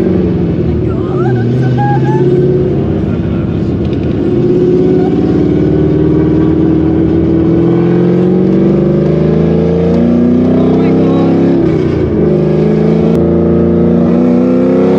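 A car engine revs and rises in pitch as the car speeds up.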